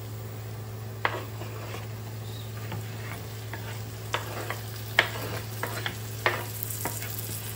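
Chopped tomatoes are scraped off a board and drop into a frying pan.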